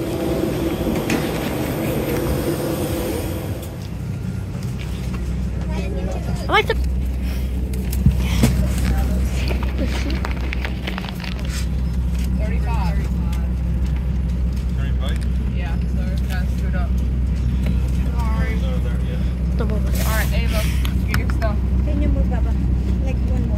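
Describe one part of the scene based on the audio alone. A steady low hum of an airliner cabin's air system fills the space.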